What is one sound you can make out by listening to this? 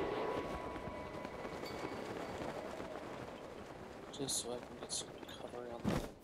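Wind rushes softly during a glide.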